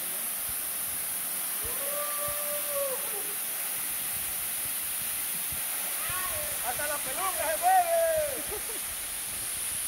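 A waterfall rushes and splashes steadily close by.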